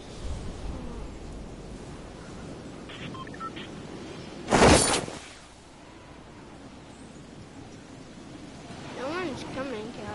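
Wind rushes steadily past a falling skydiver.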